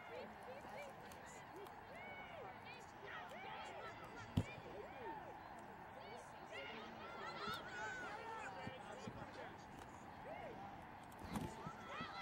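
Young women shout and call out across an open field at a distance.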